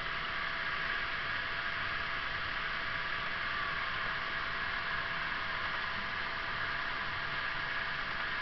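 A small plane's engine drones steadily.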